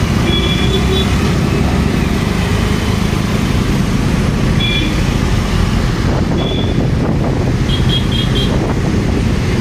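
Vehicle horns beep briefly several times.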